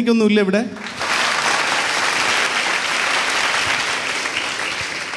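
A large crowd applauds and cheers.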